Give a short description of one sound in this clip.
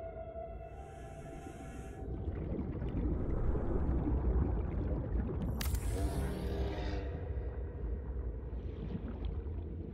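A low, muffled underwater rumble drones steadily throughout.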